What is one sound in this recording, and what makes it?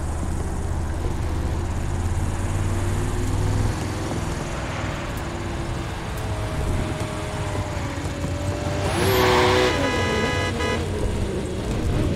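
A sports car engine roars and hums steadily.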